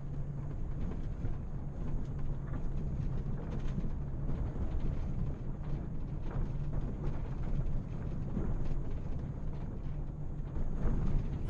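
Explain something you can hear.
Tyres rumble and rattle over a rough road.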